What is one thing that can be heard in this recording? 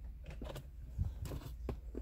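Plastic parts click and knock as a car radio unit is handled.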